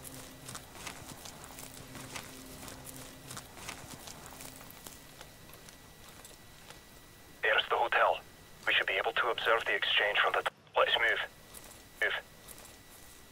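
Dry grass rustles as a soldier crawls through it.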